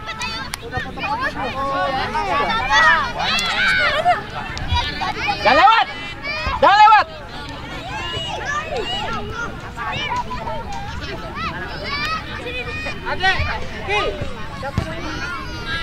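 Young players shout and call out across an open outdoor field.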